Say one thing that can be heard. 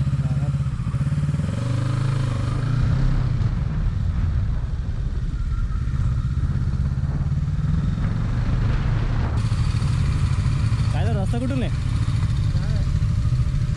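Wind buffets loudly as the motorcycle rides along.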